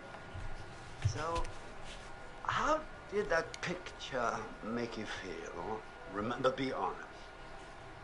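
A middle-aged man speaks calmly and clearly, close by.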